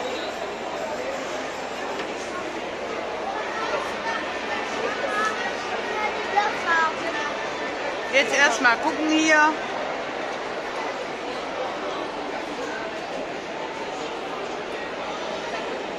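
A crowd of people chatters and murmurs indoors.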